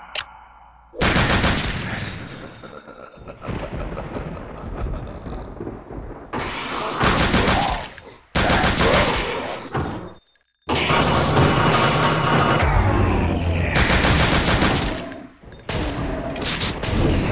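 A pistol fires shot after shot, loud and close.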